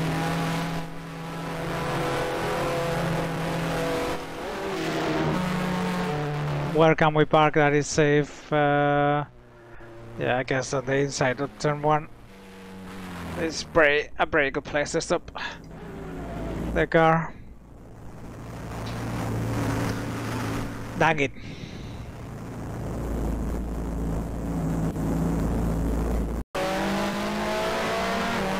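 A racing car engine whines steadily, then slows down.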